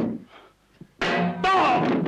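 A frying pan clangs hard against a man's head.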